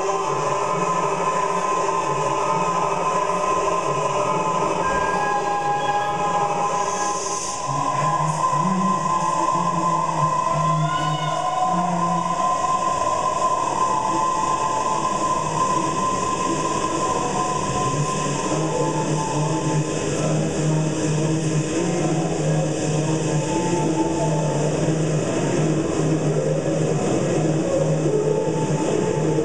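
Layered, live-looped vocal phrases repeat underneath.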